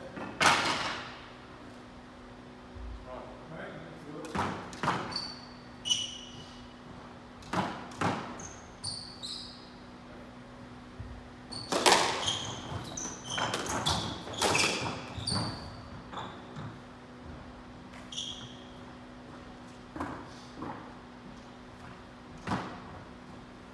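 A squash ball smacks hard against walls, echoing in a large hall.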